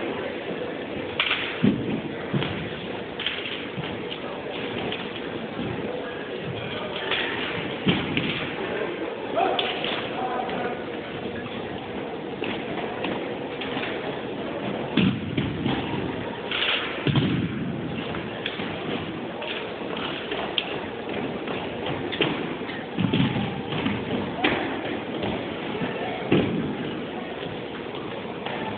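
Rifles slap and thud against hands and the floor in a large echoing hall.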